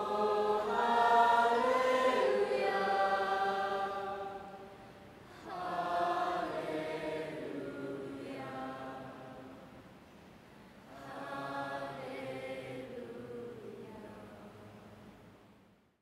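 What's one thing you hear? A band plays slow music through loudspeakers.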